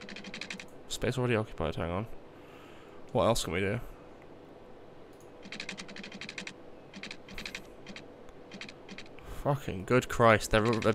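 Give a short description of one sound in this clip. A young man talks casually and close into a microphone.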